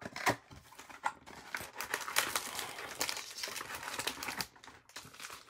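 A cardboard box lid scrapes and slides open.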